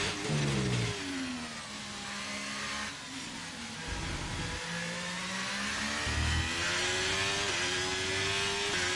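A racing car engine screams, its pitch dropping and rising with gear changes.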